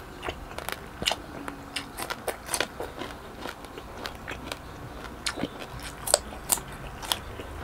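Crisp cucumber crunches as a man bites into it.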